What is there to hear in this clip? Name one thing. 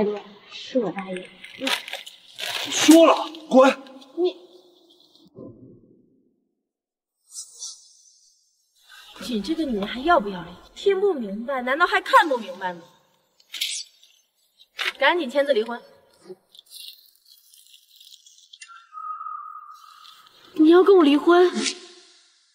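A young woman speaks softly and apologetically, close by.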